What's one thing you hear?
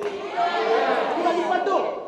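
A young man shouts back in protest.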